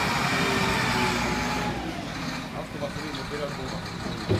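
Coal rattles and pours out of a loader bucket.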